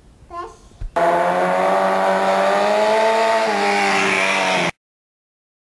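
A motorcycle engine hums steadily nearby, its pitch rising and falling slightly.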